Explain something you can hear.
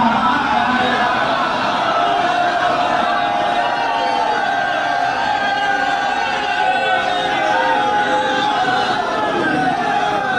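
A crowd of men cheers and calls out in praise.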